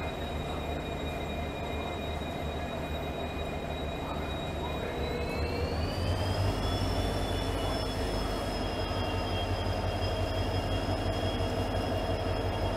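A diesel locomotive engine rumbles steadily and revs up as the train pulls away.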